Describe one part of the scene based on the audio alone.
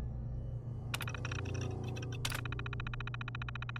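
Computer keys clatter in quick, rapid clicks.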